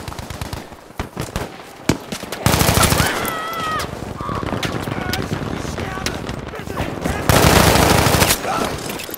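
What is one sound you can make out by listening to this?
Gunshots crack and echo outdoors.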